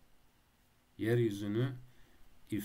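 A man speaks slowly into a microphone, drawing out his words.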